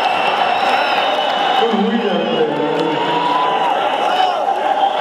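A rock band plays loudly through big loudspeakers.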